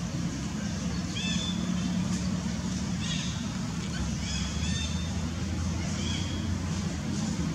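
A baby monkey squeaks in short, high chirps.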